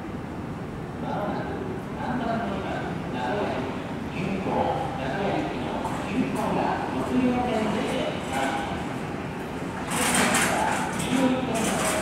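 Men and women chat nearby in low voices.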